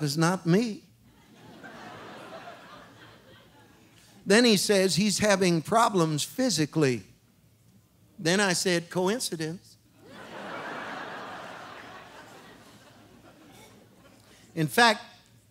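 An audience laughs softly in a large hall.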